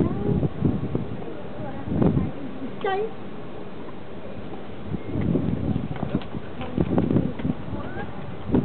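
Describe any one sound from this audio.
Children talk and call out nearby outdoors.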